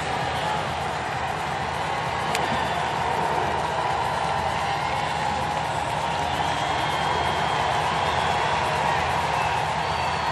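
A large stadium crowd murmurs and cheers steadily in the open air.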